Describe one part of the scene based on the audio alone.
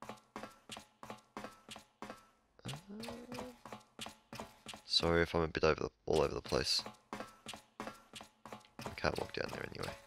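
Footsteps tap quickly on a hard metal floor.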